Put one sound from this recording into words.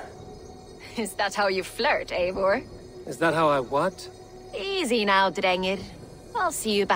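A woman answers in a calm, teasing voice.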